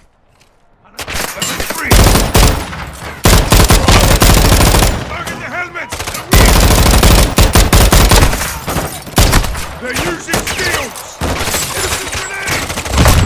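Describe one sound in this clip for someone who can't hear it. A machine gun fires rapid, loud bursts close by.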